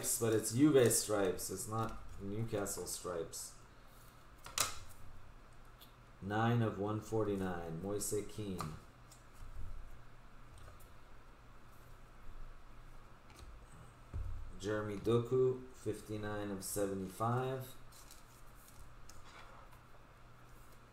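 Plastic card sleeves rustle and click in hands.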